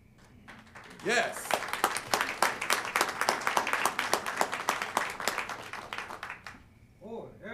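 An audience claps and cheers in a large room.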